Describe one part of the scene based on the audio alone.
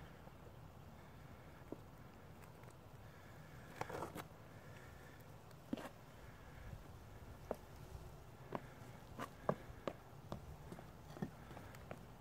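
A small child's shoes scuff and tap on stone blocks.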